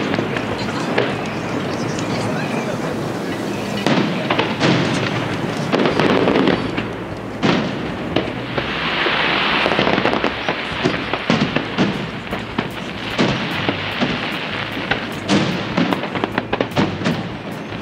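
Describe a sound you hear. Fireworks crackle and fizz.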